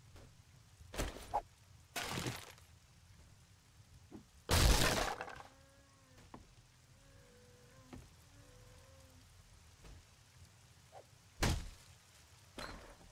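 Footsteps thud on wooden boards.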